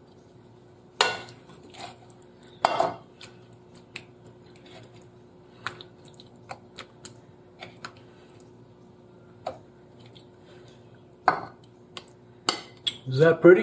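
A metal spoon scrapes and clinks against a frying pan.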